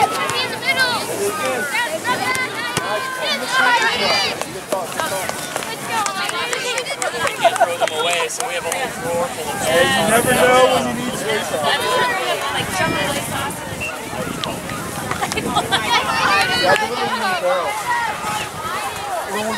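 A crowd of spectators chatters and calls out close by, outdoors.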